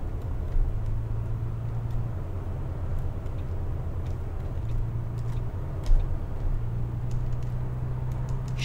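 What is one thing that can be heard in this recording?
A bus engine hums steadily, its pitch rising and falling as the bus drives and turns.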